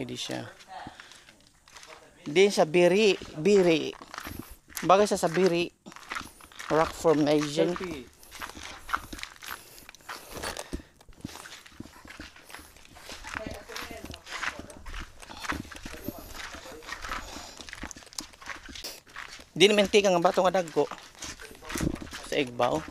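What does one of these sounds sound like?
Footsteps crunch over loose rocks.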